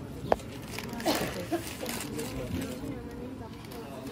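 Newspaper rustles and crinkles as it is torn and folded.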